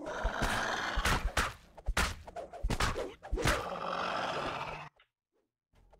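Video game combat sounds clash and thud.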